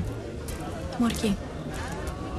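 A young woman answers briefly nearby.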